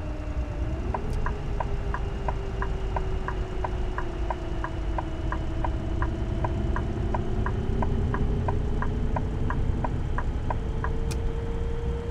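A turn signal ticks rapidly in a steady rhythm.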